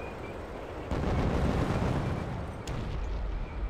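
An explosion booms far off.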